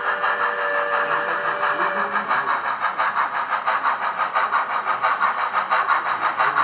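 A model steam locomotive chuffs in a quick, steady rhythm.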